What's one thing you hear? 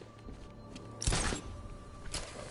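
A grappling hook fires with a sharp whoosh.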